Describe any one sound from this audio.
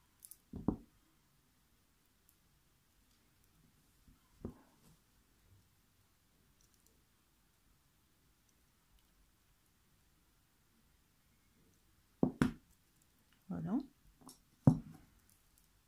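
Metal pliers click and clink against beads.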